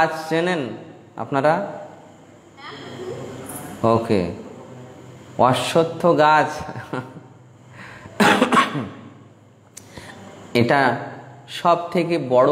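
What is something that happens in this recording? A middle-aged man speaks calmly and expressively into a close microphone, with short pauses.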